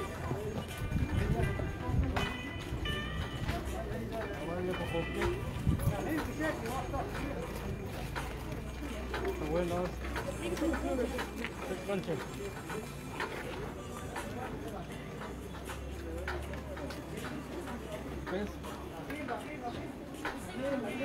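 A crowd of people murmurs and talks nearby.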